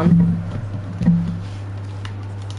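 A handheld scanner buzzes with an electric whir.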